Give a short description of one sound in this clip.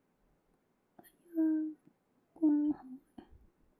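A young woman speaks close to a microphone in short phrases.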